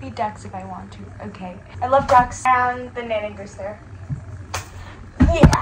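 A young woman sings close to the microphone.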